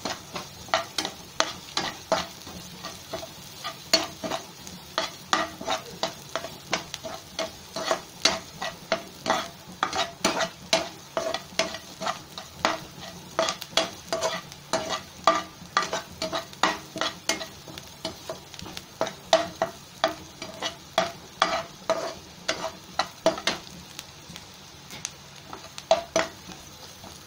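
A metal spoon scrapes and clinks rapidly against a frying pan.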